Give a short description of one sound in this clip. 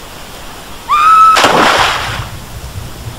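Water splashes as a swimmer plunges in.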